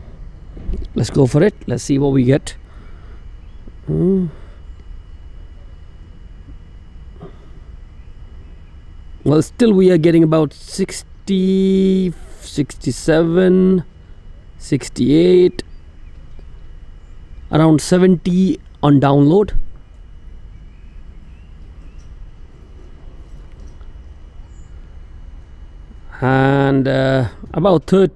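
A man speaks calmly, close by, in short bursts with pauses.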